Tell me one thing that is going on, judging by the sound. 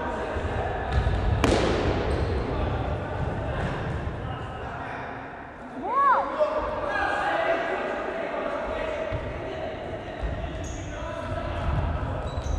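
Sneakers squeak and thud on a hard floor as players run.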